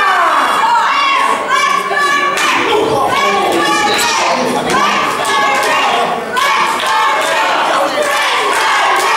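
A crowd cheers and shouts loudly in an echoing hall.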